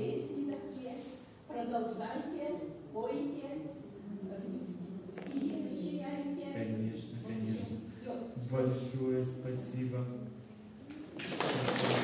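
An elderly man talks calmly through a microphone in an echoing room.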